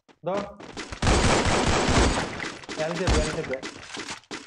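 A rifle fires a rapid burst of loud shots.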